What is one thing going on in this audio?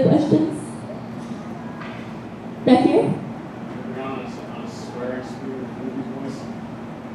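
A young woman speaks animatedly into a microphone, heard through loudspeakers in a large room.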